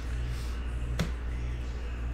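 A trading card taps down onto a stack of cards.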